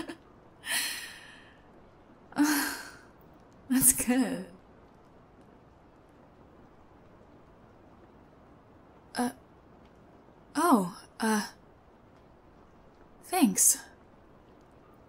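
A young woman speaks softly and close to a microphone, in short breathy bursts.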